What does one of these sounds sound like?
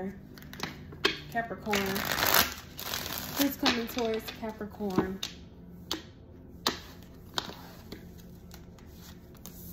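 Playing cards tap and click against a hard tabletop.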